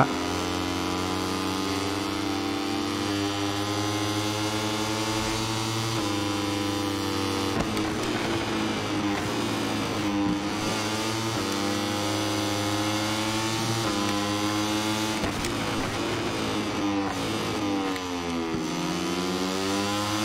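A racing motorcycle engine screams at high revs, shifting gears up and down.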